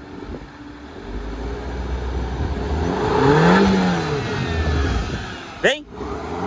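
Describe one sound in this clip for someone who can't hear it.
A car engine revs hard, rising and falling.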